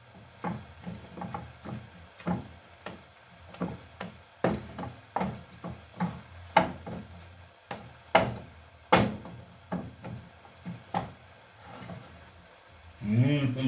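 A wooden pestle pounds food in a metal pot with dull, rhythmic thuds.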